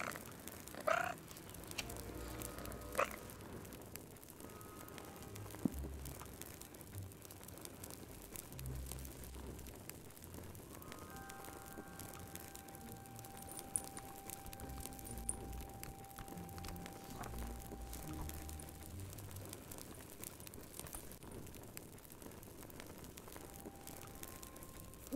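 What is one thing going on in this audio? A fire crackles and pops softly in a fireplace.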